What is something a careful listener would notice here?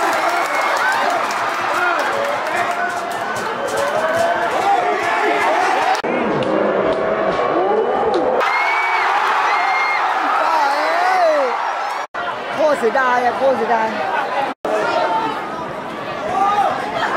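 A large stadium crowd sings and chants loudly.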